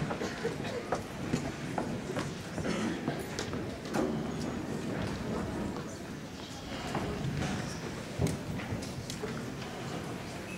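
A vibraphone rings with mallet notes.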